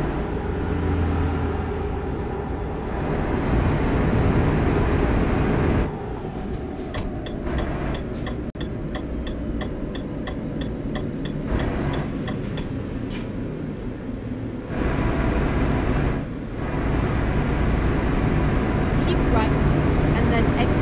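Truck tyres roar on a highway.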